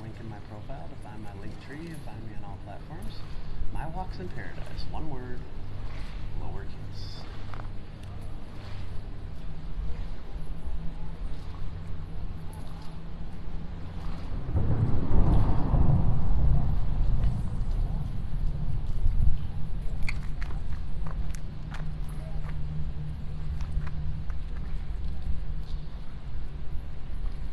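Water laps gently against a wall.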